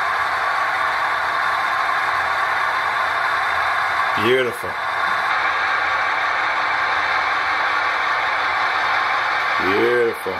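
A model locomotive's motor hums steadily as it rolls along the track.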